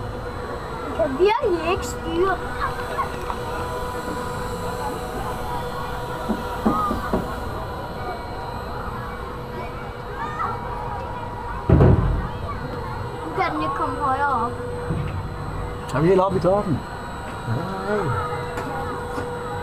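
A young child exclaims and chatters close by.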